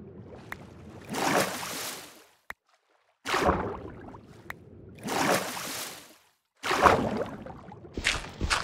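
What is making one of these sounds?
Water splashes and swishes as a swimmer moves through it.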